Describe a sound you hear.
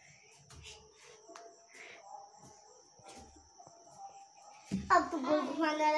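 Footsteps climb a stairway.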